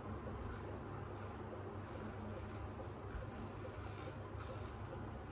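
A razor scrapes through stubble in short strokes.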